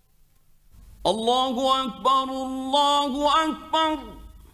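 A man chants in a long, drawn-out melodic voice through a microphone, in a reverberant space.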